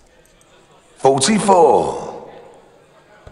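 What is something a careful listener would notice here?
A man shouts out loudly nearby, his voice ringing through a large hall.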